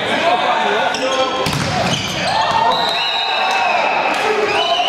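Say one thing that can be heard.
Sneakers squeak on a hard gym floor.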